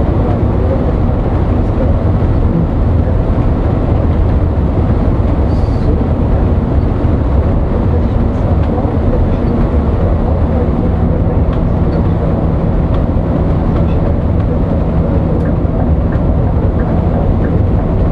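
Tyres roar on a road at speed.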